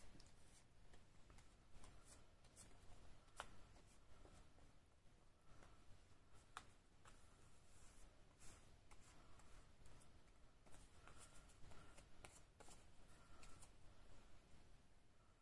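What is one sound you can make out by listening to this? A brush swishes softly across paper.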